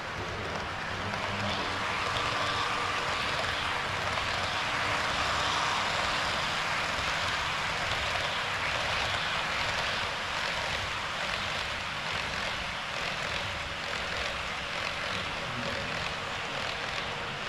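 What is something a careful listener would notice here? A model train rumbles along its track close by.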